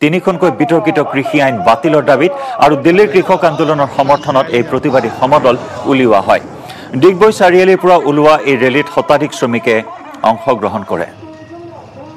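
A crowd of marchers chants slogans loudly outdoors.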